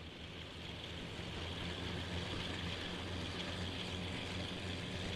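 Steel wheels rumble and rattle over rails.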